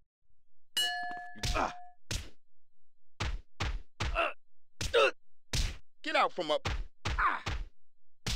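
Punches thud against a body in quick blows.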